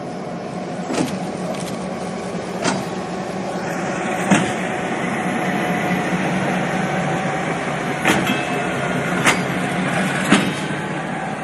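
Metal wheels clank and knock over rail joints.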